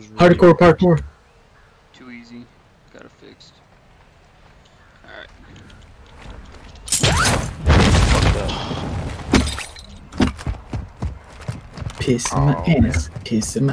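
A young man talks into a close microphone.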